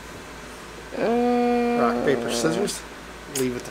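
A young woman hums a drawn-out note.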